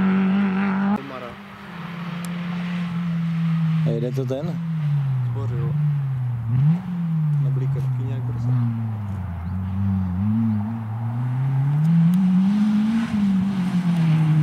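A second small hatchback rally car races by at full throttle, its engine rising and falling as it shifts gears.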